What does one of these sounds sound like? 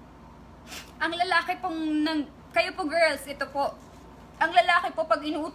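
A young woman speaks emotionally and close up.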